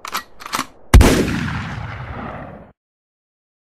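A gunshot fires loudly and echoes away.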